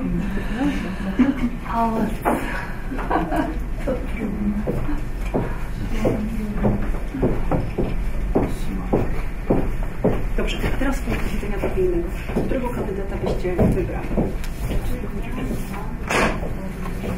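Several men and women murmur and chat in the background.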